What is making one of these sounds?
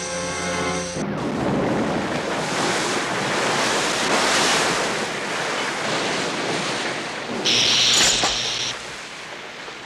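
A loud blast roars and rumbles for several seconds.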